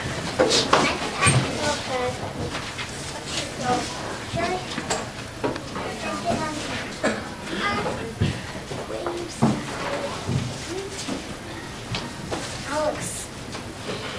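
Children talk and call out in a room with some echo.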